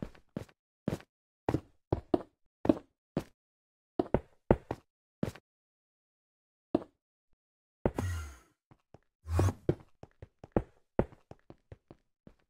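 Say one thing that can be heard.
Stone blocks are set down with short, quick knocks.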